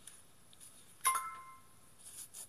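A computer plays a short, bright chime.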